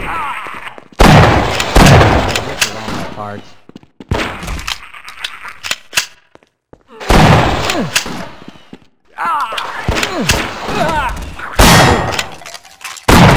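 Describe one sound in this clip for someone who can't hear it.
Gunshots bang loudly, one after another.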